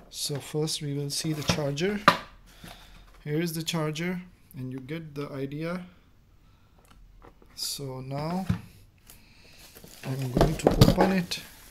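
Cardboard boxes scrape and thump as they are handled.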